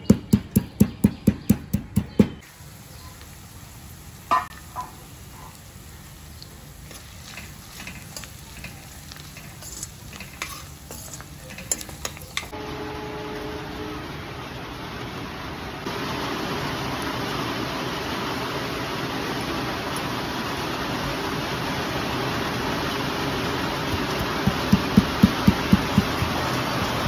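A pestle pounds in a stone mortar with quick, heavy thuds.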